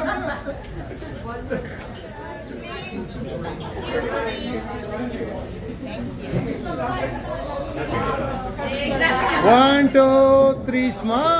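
A crowd of men and women chat nearby.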